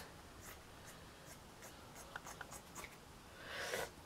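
Scissors snip through soft fabric with small clicks.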